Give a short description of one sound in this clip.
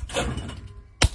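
A shotgun fires a single loud shot outdoors.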